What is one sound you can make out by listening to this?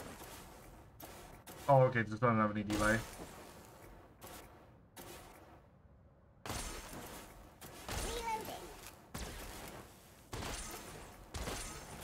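Single gunshots go off at intervals.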